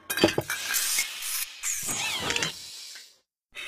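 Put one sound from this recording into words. Heavy machine clamps clank and whir.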